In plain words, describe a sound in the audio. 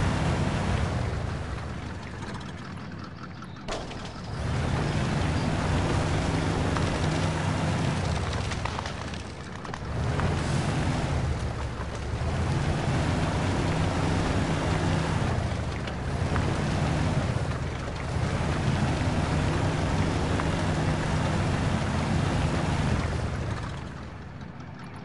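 Tyres churn and squelch through thick mud.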